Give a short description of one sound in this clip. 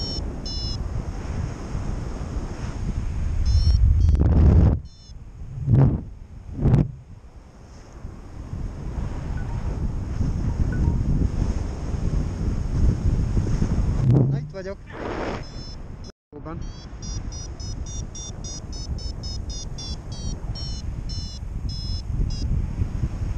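A flight instrument beeps in quick, rising chirps.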